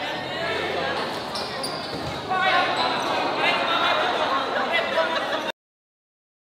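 A large crowd cheers and shouts loudly in an echoing indoor hall.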